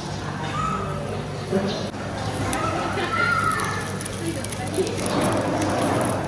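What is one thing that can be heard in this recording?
An omelette sizzles in a pan.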